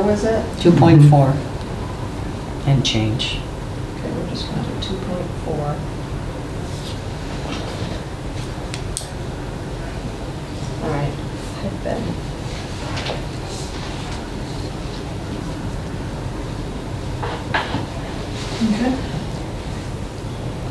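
Adults talk quietly, heard through a distant microphone.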